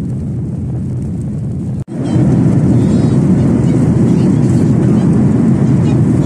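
Aircraft engines drone with a steady, low roar.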